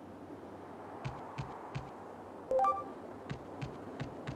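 Footsteps thud quickly on a hard surface.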